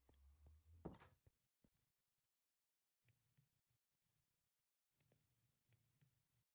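Fire crackles softly in furnaces.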